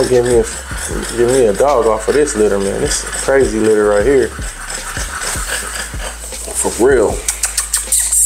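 A man talks to a dog in a lively, coaxing voice close by.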